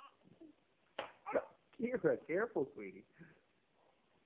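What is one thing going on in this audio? A small child squeals and shrieks with excitement.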